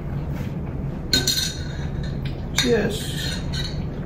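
Glasses clink together.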